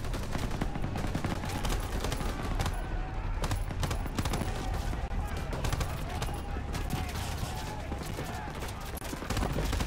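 Gunfire crackles rapidly in a battle.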